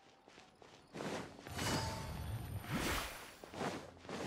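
A magical blast bursts with a loud whoosh.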